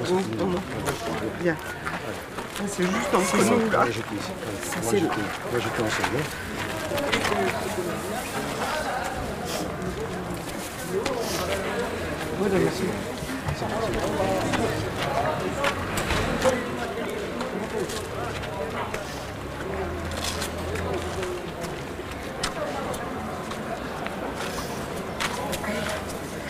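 Several elderly people talk among themselves outdoors.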